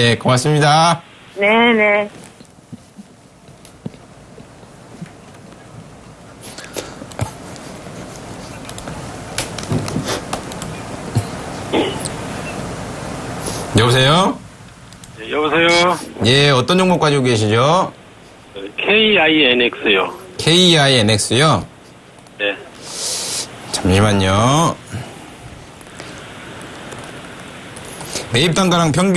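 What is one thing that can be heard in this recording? A young man speaks into a microphone in a lively way.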